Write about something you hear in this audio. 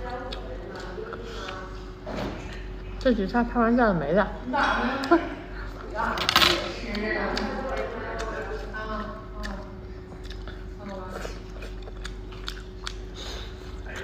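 A young woman chews and slurps food noisily.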